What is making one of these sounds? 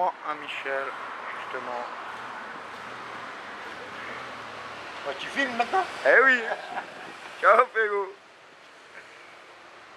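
A motorcycle engine rumbles as it drives past.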